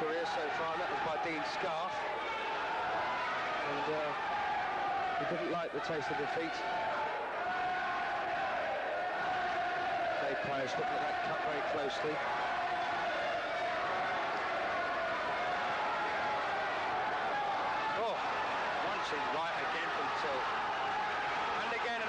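A crowd cheers and murmurs steadily in a large hall.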